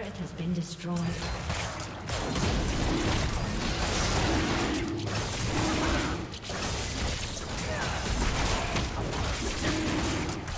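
Magic spells crackle and blast during a fierce fight.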